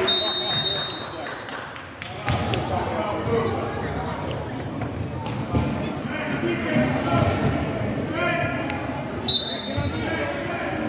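Sneakers squeak on a hardwood floor in an echoing gym.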